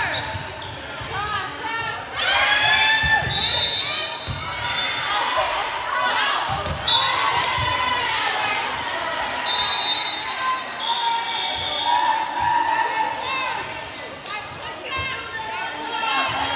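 Young female players shout and call out to each other.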